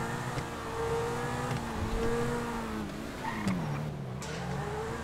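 A sports car engine hums and revs, its pitch rising and falling.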